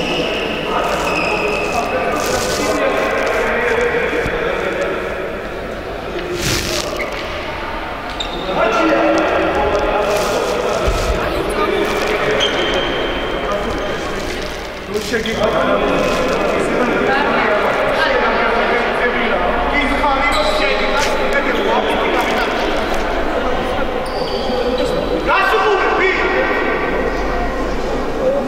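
Young women chatter and call out in a large echoing hall.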